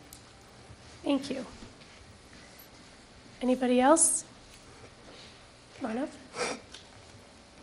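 A woman answers briefly through a microphone.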